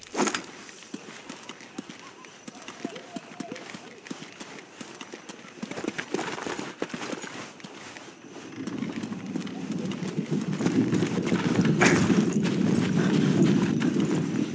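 Soft footsteps crunch across stone and dirt.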